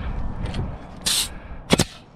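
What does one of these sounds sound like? A pneumatic nail gun fires with a sharp hiss and bang.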